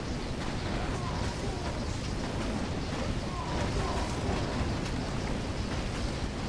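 Small explosions pop and thud repeatedly.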